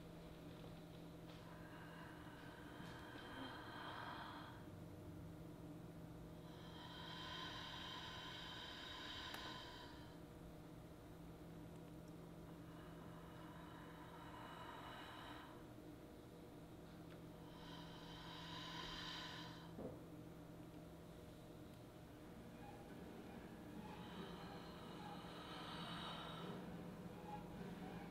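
A harp plays softly.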